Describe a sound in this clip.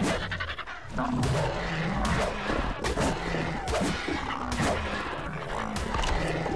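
Heavy blows thud as creatures strike each other.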